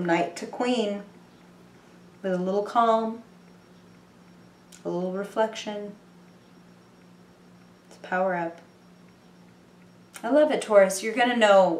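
A young woman speaks calmly and close by in short phrases with pauses.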